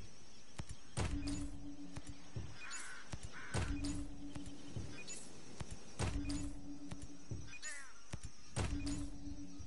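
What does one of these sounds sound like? A short electronic chime sounds several times.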